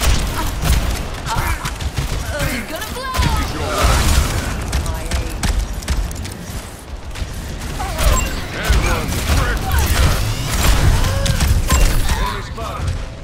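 Energy blasts crackle and explode.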